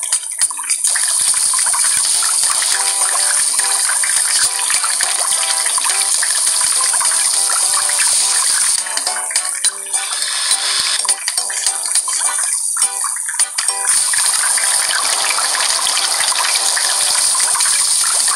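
Burger patties sizzle on a hot grill.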